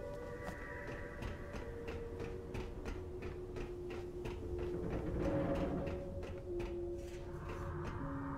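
Quick footsteps clatter up metal stairs and run across a hard floor.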